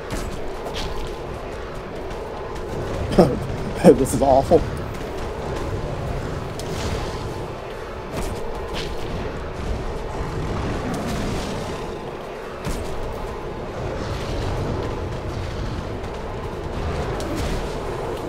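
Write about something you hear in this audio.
A sword strikes a beast with dull thuds.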